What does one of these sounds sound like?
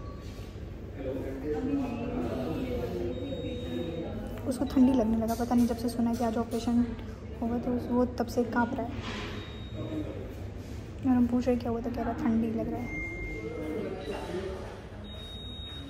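A young woman talks close to a phone microphone, calmly and then with animation.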